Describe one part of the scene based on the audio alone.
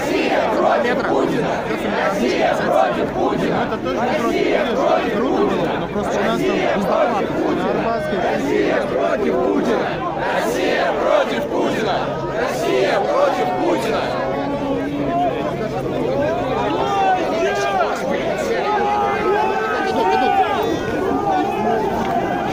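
A large outdoor crowd chatters and murmurs loudly all around.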